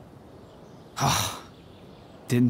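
A man answers briefly in a low, calm voice.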